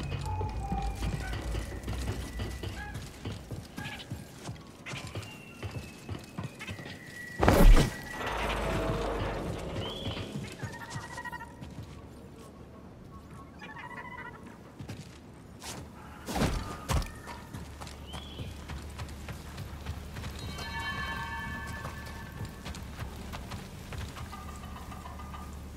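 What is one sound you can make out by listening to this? Footsteps thud on wooden planks and rock.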